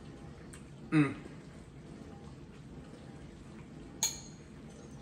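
A fork clinks against a bowl.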